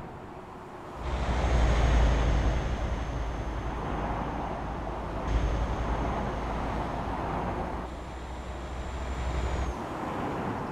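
A truck rolls past with a low rumble and tyre noise.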